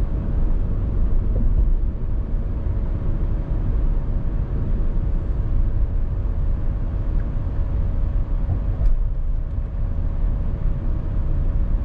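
A car engine hums steadily.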